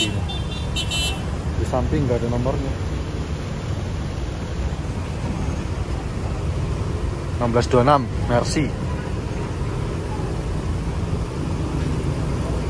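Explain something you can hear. A large bus engine rumbles steadily nearby.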